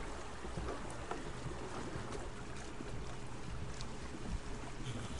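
Water splashes and laps steadily against a wooden raft.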